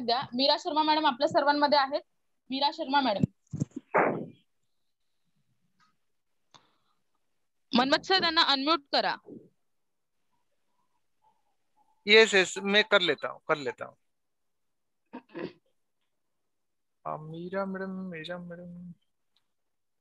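A woman speaks with animation over an online call, in short bursts with pauses.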